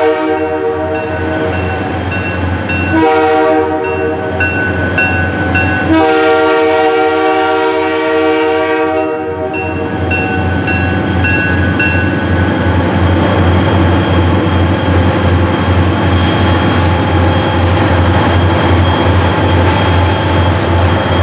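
A diesel locomotive engine rumbles as it draws closer.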